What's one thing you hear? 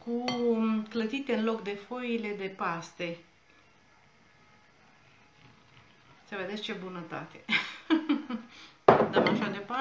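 A whisk clinks against a bowl.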